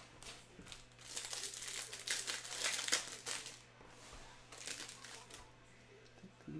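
Cardboard packs rustle and tear open.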